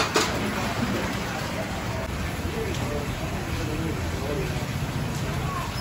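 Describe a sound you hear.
Water gushes from a hose into a large metal pot.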